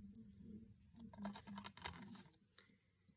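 A plastic case clicks and rustles in hands.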